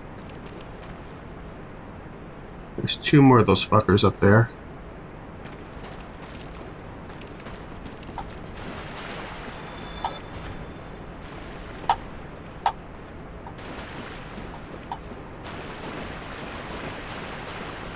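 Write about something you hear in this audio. Armored footsteps crunch on gravel.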